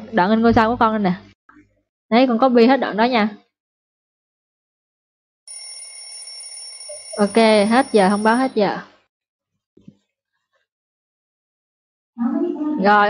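A young woman speaks calmly through an online call.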